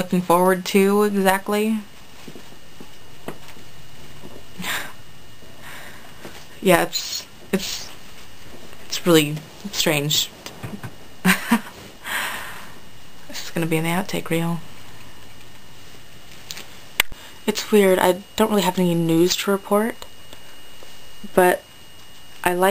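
A young woman speaks close to the microphone, calmly and with pauses.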